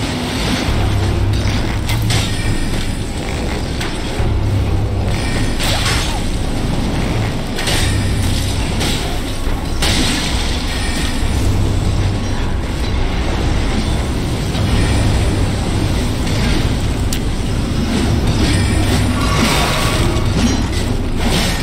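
Weapons clash and strike with heavy thuds.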